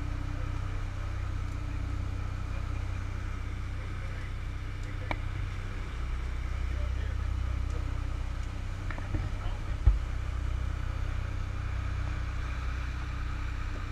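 Churning wake water rushes and splashes behind a boat.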